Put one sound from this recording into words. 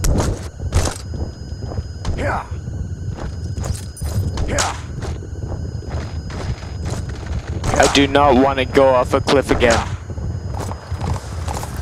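A horse's hooves gallop and clop on the ground.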